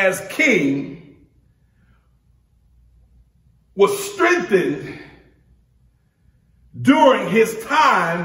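A man preaches with animation into a microphone, pausing between phrases.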